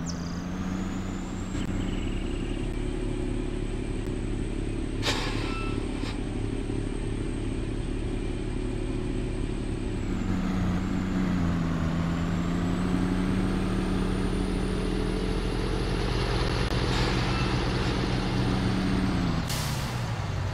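A truck engine rumbles steadily, its pitch dipping and rising as it drives.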